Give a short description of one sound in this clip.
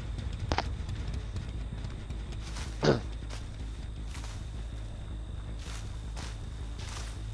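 Footsteps rustle through dry corn stalks.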